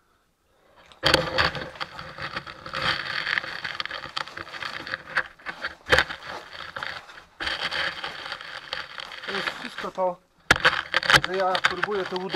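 Footsteps crunch and scrape over loose rock.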